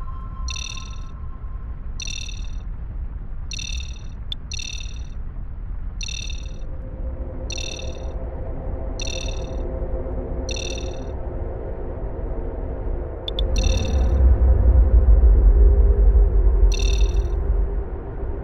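A cockpit warning tone beeps in short, repeated bursts.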